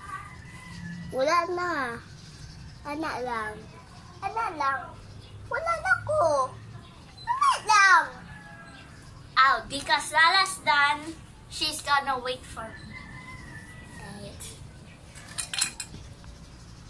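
A teenage girl speaks calmly nearby.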